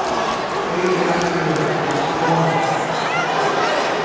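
A man calls out loudly as a referee.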